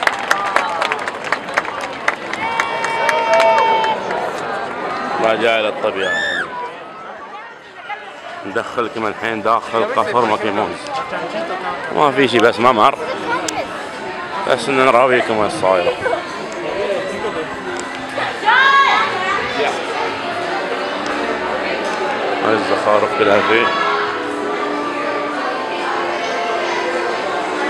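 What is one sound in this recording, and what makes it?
A crowd of men and women chatters and calls out all around.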